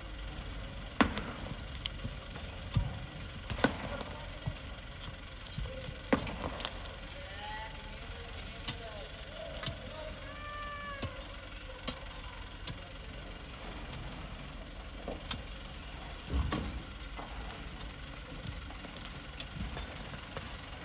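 Stones knock and clatter.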